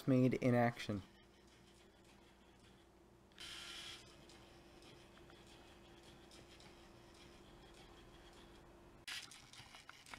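A small robot's motors whir softly as it creeps forward.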